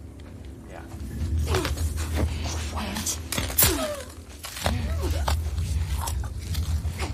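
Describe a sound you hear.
Tall grass rustles and swishes as someone pushes through it.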